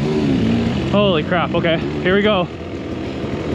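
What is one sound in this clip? Another dirt bike engine whines briefly a short way ahead.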